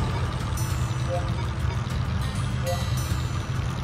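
Electronic menu beeps chime briefly.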